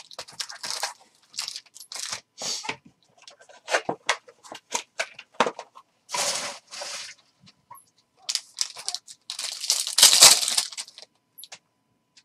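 Foil card packs rustle and crinkle as hands handle them.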